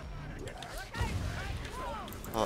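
A fireball bursts with a loud whoosh.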